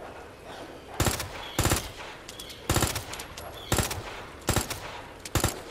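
A handgun fires a quick series of loud, sharp shots.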